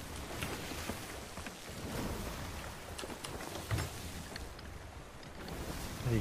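Waves roll and splash against a wooden ship.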